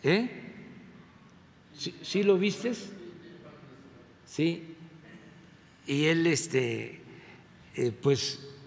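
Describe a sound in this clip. A man speaks through a microphone and loudspeakers in a large echoing hall, in short bursts.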